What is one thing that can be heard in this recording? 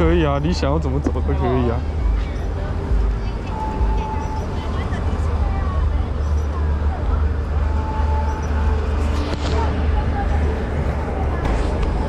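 A crowd chatters outdoors nearby.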